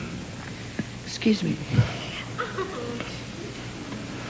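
A woman speaks softly through a microphone.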